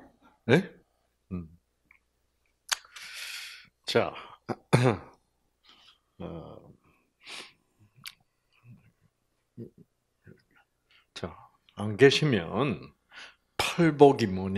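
An elderly man speaks into a microphone in short, halting bursts with long pauses.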